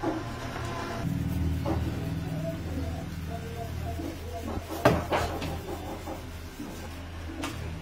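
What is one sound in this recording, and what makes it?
A block rubs back and forth across a wooden board.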